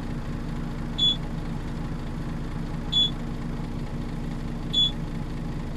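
A ticket machine beeps briefly, several times.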